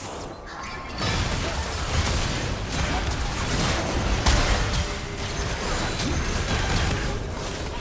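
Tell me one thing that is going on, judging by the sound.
Spell blasts and clashing hits from a video game battle sound in quick bursts.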